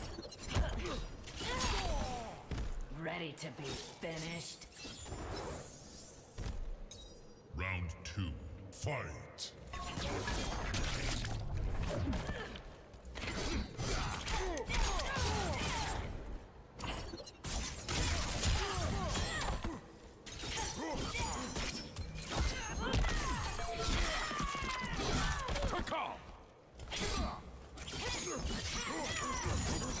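Heavy punches and blade strikes thud and slash.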